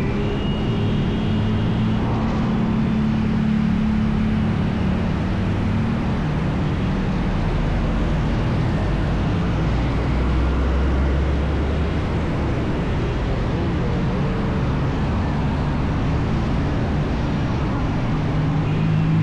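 Traffic rumbles past.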